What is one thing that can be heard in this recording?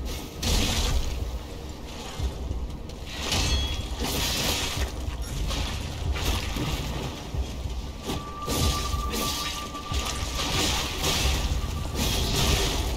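A blade slashes and strikes flesh in quick bursts.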